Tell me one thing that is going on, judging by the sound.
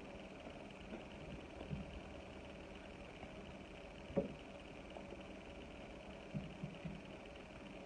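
A woman chews food with soft smacking sounds close by.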